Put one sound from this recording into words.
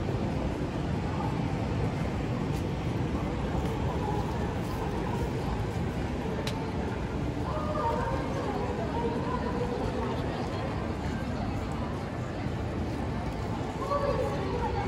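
Outdoor city street noise hums steadily with a low rumble.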